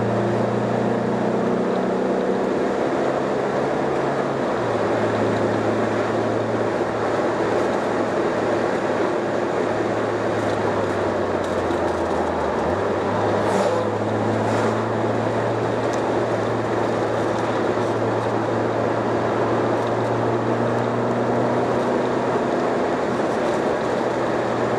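A car engine hums steadily from inside the car, shifting pitch as gears change.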